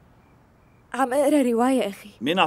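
A young woman speaks in surprise nearby.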